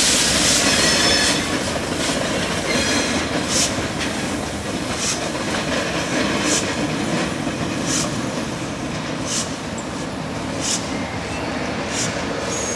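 Freight wagons rumble and clatter over the rails.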